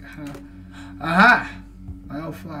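A young man exclaims loudly in surprise.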